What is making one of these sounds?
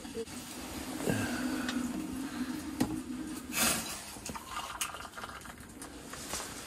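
Hot water pours from a kettle into a cup.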